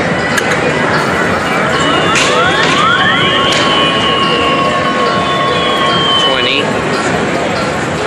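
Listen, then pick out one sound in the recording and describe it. An arcade machine plays electronic beeps and gliding tones.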